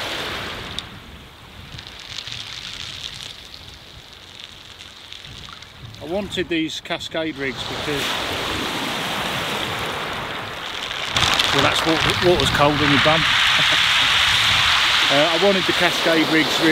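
Small waves wash gently onto a pebble shore.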